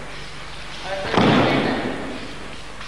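A body thuds onto a mat.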